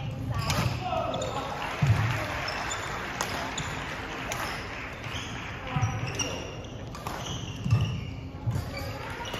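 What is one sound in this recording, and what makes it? Shoes squeak on a wooden court floor.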